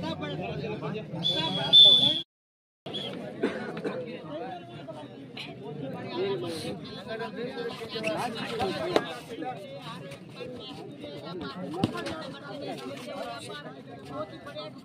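A crowd of spectators chatters and cheers outdoors.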